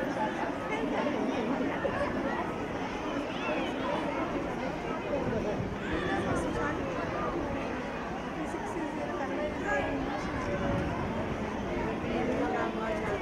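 A crowd of men and women chatters nearby.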